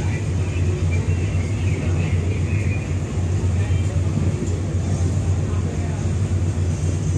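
A ship's engine rumbles steadily and low.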